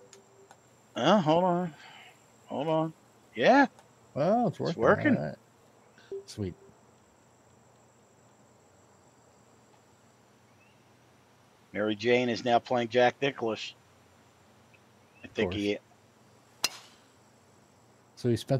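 A man talks casually into a headset microphone, in bursts with pauses.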